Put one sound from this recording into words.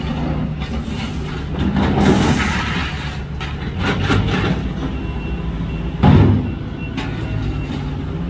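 Debris crashes into a garbage truck.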